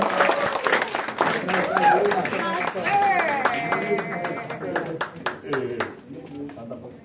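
An audience claps and cheers in a room.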